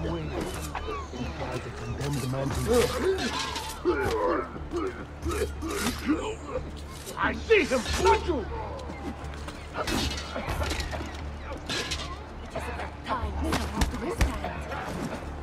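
Men grunt and cry out as they are struck.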